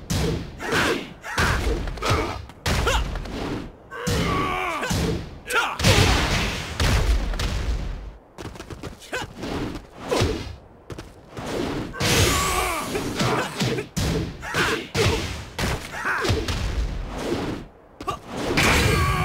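Punches and kicks land with sharp thuds and cracks.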